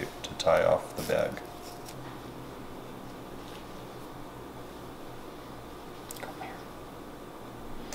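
A paper towel rustles as it is unwrapped.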